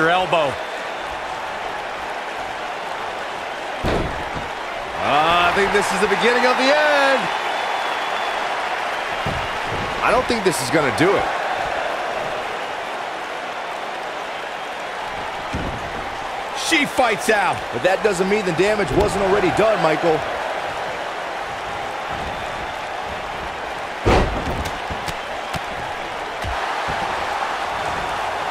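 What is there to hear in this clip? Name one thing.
A large crowd cheers and roars steadily in a big echoing arena.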